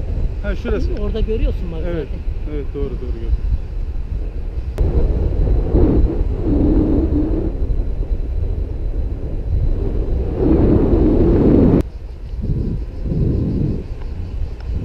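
A man speaks with animation close by, partly covered by wind.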